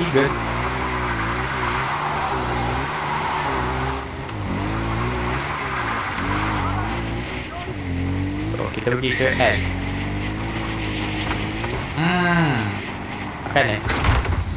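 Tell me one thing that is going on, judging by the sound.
A quad bike engine revs up and down as it drives over rough ground.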